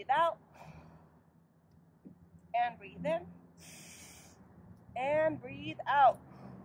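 A woman speaks calmly close by, outdoors.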